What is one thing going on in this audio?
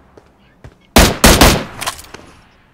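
A loud rifle shot cracks and echoes.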